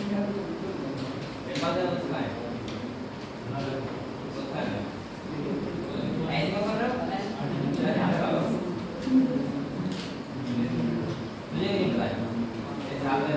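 A young man speaks calmly in a room with a slight echo.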